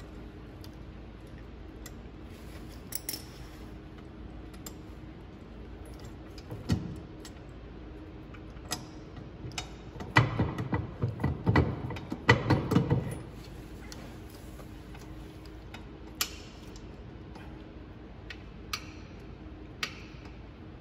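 Small metal clicks and knocks come up close, now and then.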